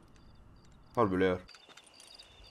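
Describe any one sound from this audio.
A man speaks briefly in a low voice, close by.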